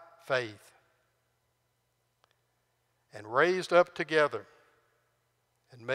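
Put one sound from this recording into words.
An older man speaks calmly through a microphone in a room with a slight echo.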